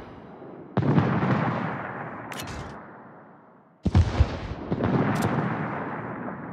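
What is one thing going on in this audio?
A warship's naval guns fire with deep booms that roll away.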